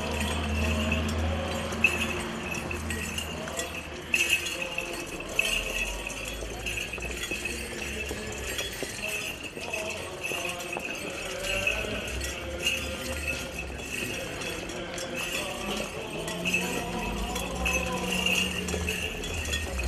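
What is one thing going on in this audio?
A group of men chant together outdoors.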